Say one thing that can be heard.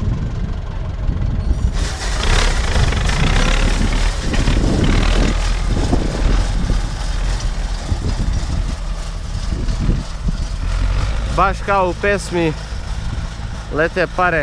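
A tractor engine rumbles as the tractor drives away.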